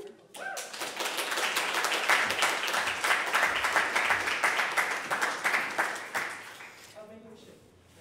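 An audience applauds in an echoing room.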